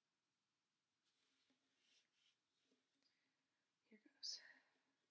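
A ukulele is plucked softly.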